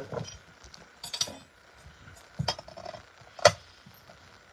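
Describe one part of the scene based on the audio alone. A plate clinks on a table.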